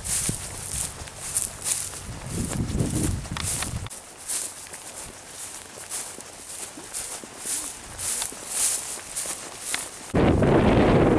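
Footsteps swish quickly through grass.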